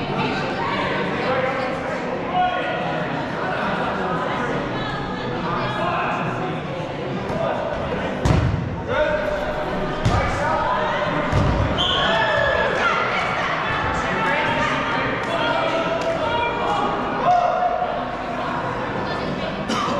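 Many men and women shout and chatter, echoing in a large hall.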